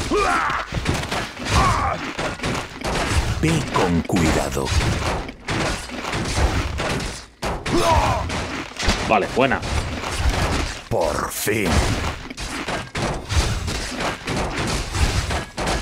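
Weapons clash and strike repeatedly in a skirmish.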